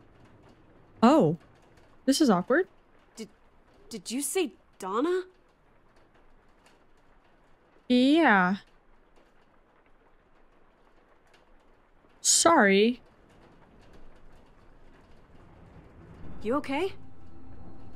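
A young woman speaks close to a microphone in short bursts.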